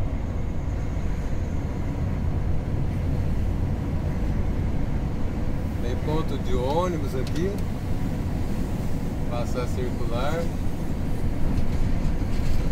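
A vehicle's engine rumbles steadily as it drives along a road.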